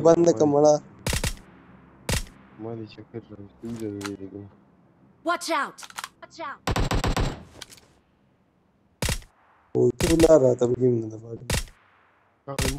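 Rifle shots crack sharply, one at a time.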